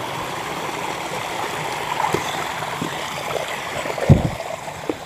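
Water trickles softly over rocks.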